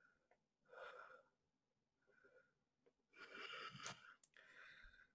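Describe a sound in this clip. A man breathes hard and grunts with effort, close by.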